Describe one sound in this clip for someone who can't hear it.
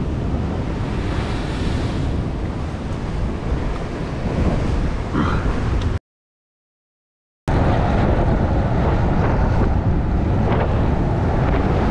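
Strong wind rumbles across a microphone outdoors.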